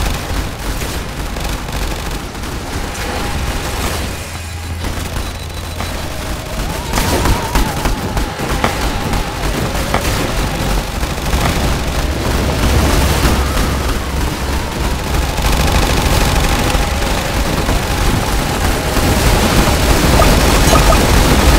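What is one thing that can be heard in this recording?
Rapid gunfire and explosions crackle constantly.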